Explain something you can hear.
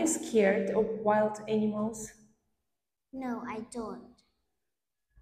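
A woman speaks calmly and clearly close by.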